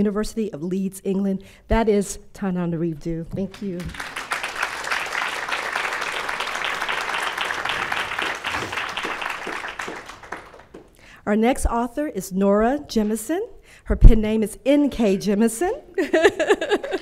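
A woman speaks with emotion into a microphone in a large hall.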